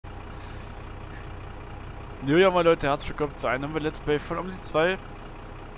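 A bus engine idles with a low, steady hum.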